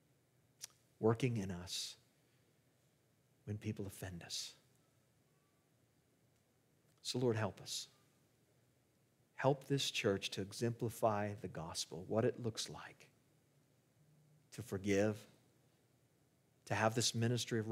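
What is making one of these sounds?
A middle-aged man speaks calmly through a microphone, in short phrases with pauses.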